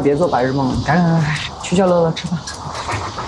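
An elderly man speaks urgently.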